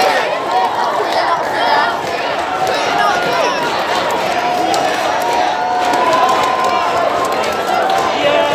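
A dense crowd of people chatters and calls out outdoors.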